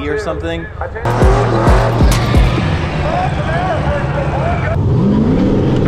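A race car engine roars as its tyres spin in a burnout.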